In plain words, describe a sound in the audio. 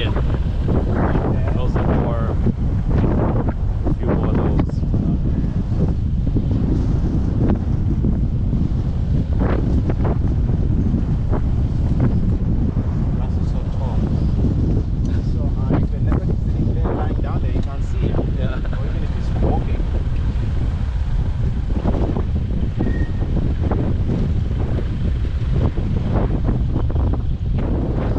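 Wind buffets loudly past an open vehicle.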